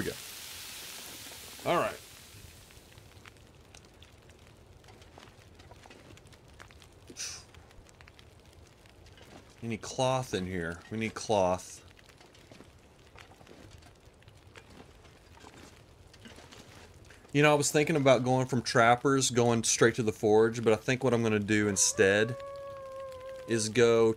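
A fire crackles softly inside a wood stove.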